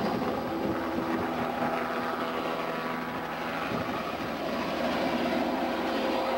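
A helicopter roars overhead with its rotor thudding as it lifts off and flies away.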